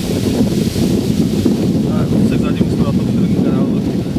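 A man speaks close by, outdoors.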